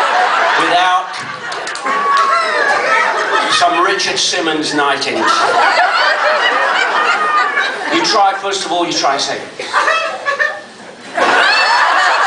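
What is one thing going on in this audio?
A middle-aged man talks with animation through a microphone in a large echoing room.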